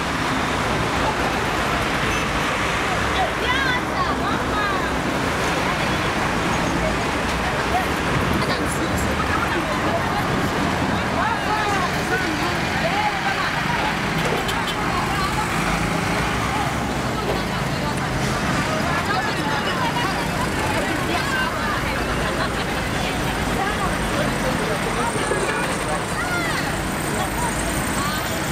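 Busy street traffic rumbles and hums outdoors.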